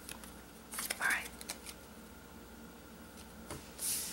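A card taps down onto a wooden table.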